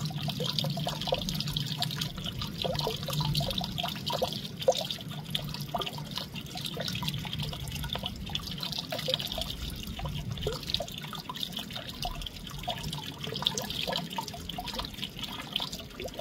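A small bird chirps and twitters nearby.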